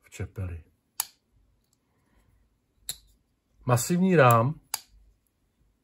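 A folding knife blade snaps open and shut with sharp clicks.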